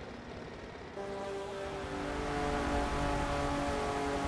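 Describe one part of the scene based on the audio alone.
A race car engine idles with a low rumble.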